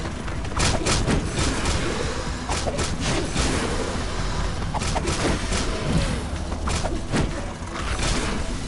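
Punches and kicks land with sharp, quick thwacks.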